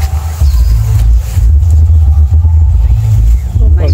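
Leaves and branches rustle as people push through dense plants.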